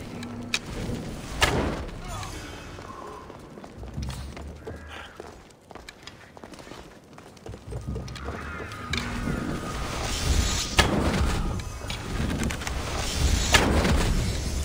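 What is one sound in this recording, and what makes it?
A bowstring twangs as an arrow is loosed, several times.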